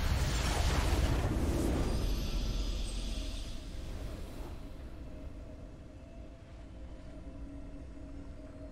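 A triumphant game fanfare swells and fades out.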